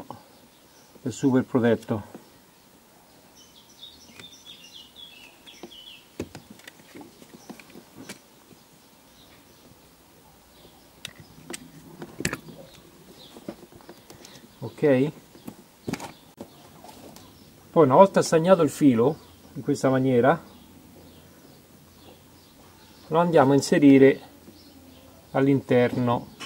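Wires and plastic connectors click and rustle softly.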